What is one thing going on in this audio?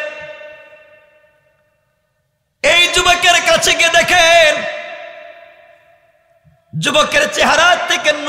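A man preaches loudly and with passion into a microphone, his voice echoing through loudspeakers.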